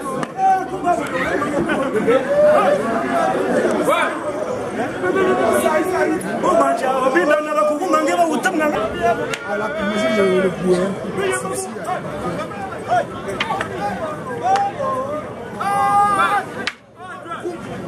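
A crowd of men and women shout and chatter excitedly outdoors.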